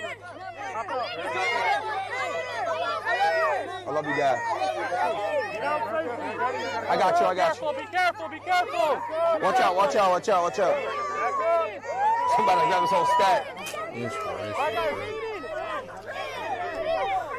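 A crowd of young people shouts and cheers excitedly outdoors.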